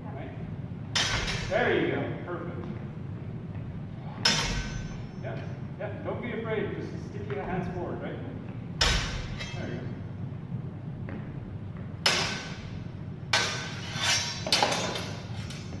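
Steel swords clash and clang sharply in an echoing hall.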